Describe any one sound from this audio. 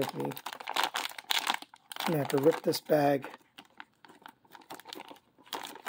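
Plastic wrapping crinkles as hands handle it.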